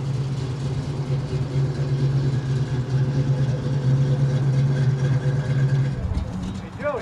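A car engine rumbles deeply as the car drives slowly past.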